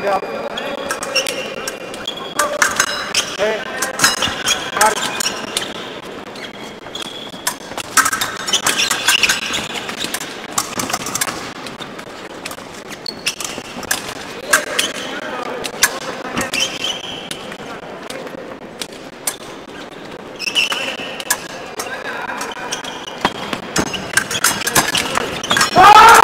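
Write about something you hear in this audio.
Fencing blades clink and scrape against each other.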